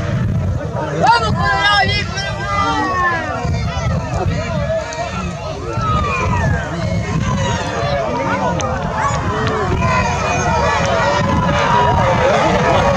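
A crowd of men and women shouts and cheers excitedly outdoors.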